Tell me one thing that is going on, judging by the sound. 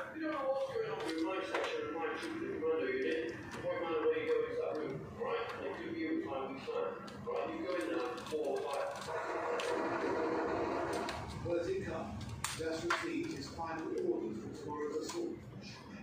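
A screwdriver scrapes and clicks against metal screws.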